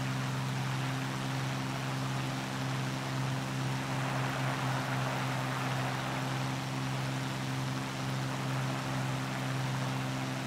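A propeller aircraft engine drones steadily with a low hum.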